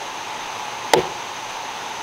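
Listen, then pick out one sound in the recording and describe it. A dead branch knocks sharply once as it is handled.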